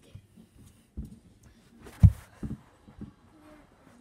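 A cat's paws thump softly on the floor close by.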